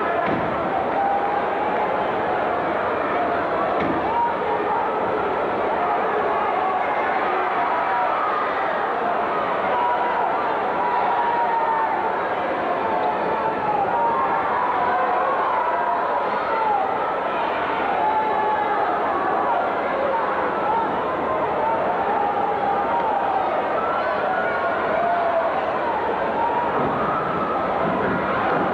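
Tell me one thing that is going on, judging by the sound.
A large indoor crowd shouts and cheers, heard from among the crowd.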